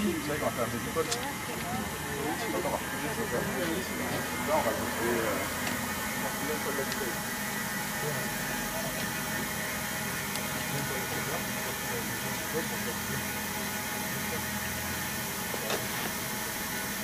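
Compressed air hisses steadily through a hose.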